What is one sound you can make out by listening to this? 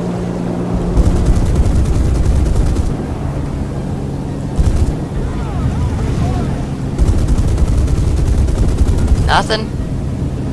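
A fighter plane's guns fire in long bursts.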